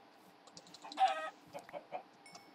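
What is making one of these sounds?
A pig grunts nearby.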